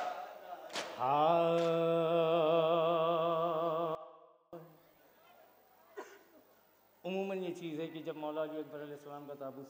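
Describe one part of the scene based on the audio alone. A young man chants loudly through a microphone in a long, wavering melody.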